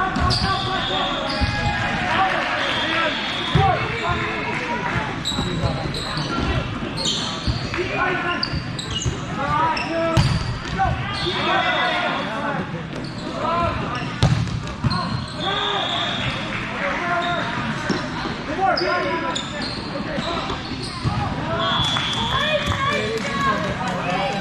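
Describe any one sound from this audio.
Shoes squeak sharply on a hard floor in a large echoing hall.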